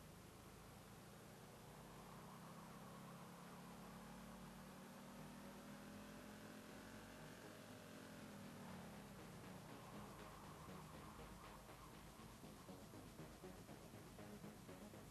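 A car engine hums steadily, its pitch slowly rising and then dropping away.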